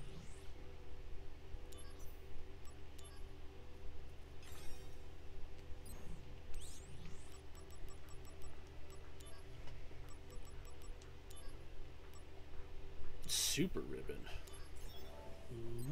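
Short electronic menu blips tick now and then.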